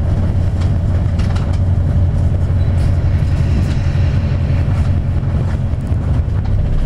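A car engine rumbles steadily from inside a moving vehicle.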